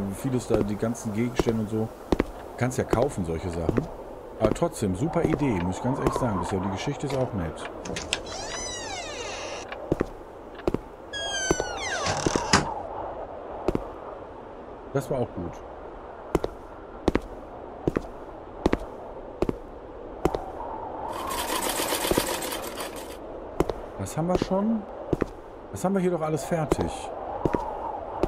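A man speaks close to a microphone, with animation.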